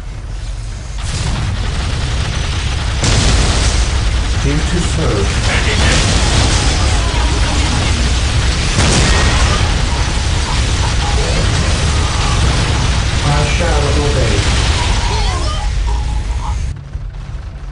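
Heavy gunfire and explosions rattle and boom in a loud battle.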